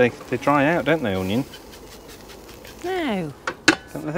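Onions sizzle on a hot grill.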